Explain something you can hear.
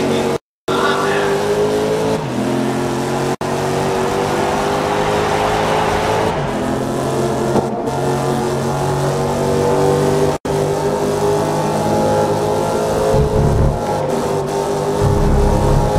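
A racing car engine roars at high revs, shifting gears as it speeds up.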